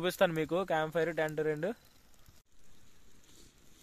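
A small fire crackles.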